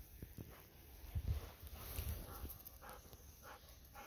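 Chestnuts click together in a hand.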